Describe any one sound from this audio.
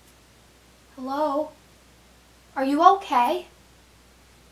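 A young woman speaks in a low, tense voice.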